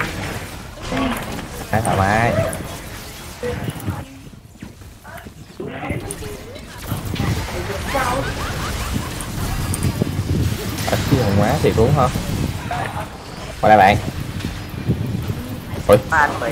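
Magic spells whoosh and burst in a fast game battle.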